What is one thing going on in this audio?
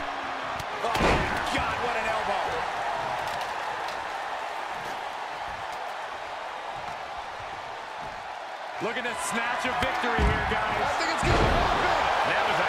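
A large crowd roars and cheers throughout in a big echoing arena.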